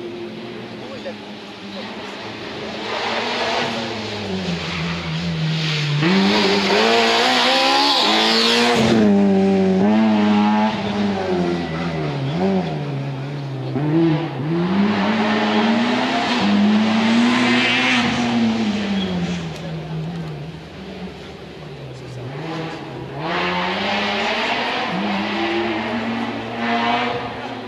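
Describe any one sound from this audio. A rally car engine revs hard, rising and falling in pitch as the car shifts gears and speeds past.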